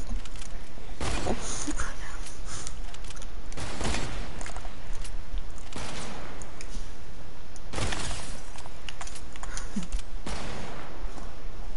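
A rifle fires loud, sharp shots a few seconds apart.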